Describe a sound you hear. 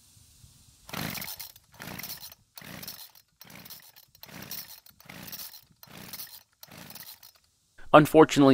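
A recoil starter cord is pulled again and again with a rasping whir.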